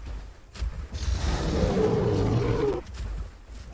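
A large creature splashes through shallow water.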